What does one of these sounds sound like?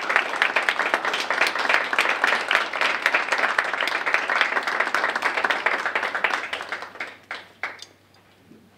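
An audience applauds in a large room, then the clapping dies away.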